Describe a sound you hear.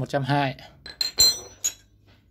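Metal hand tools clink against each other as they are set down.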